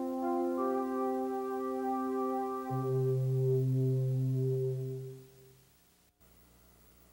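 A computer plays a short run of electronic beeping tones.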